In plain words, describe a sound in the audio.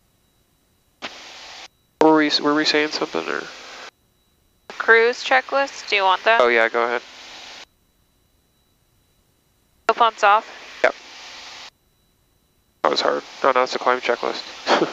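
A young woman speaks over an aircraft intercom.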